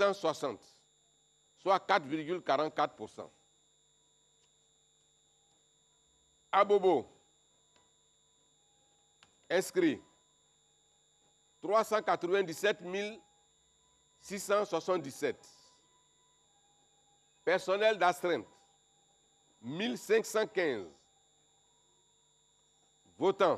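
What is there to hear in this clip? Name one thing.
An older man speaks calmly into a microphone, in short bursts with pauses.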